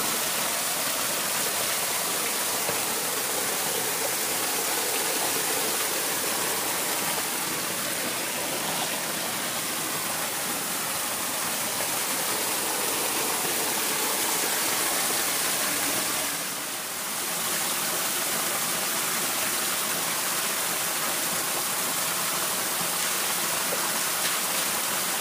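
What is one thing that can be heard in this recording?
Water splashes and trickles over a small sluice box.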